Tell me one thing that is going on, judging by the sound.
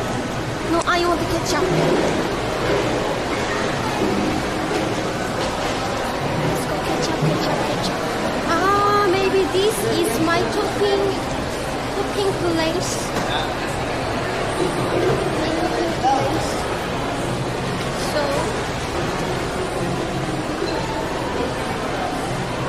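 A crowd murmurs around in a busy echoing hall.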